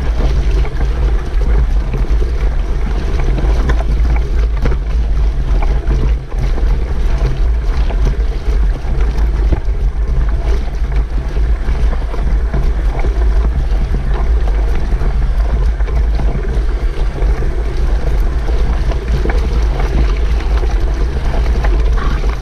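Tyres splash and squelch through mud and puddles.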